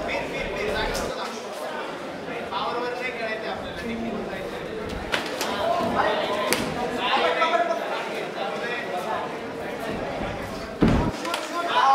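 Punches and kicks land with sharp slaps.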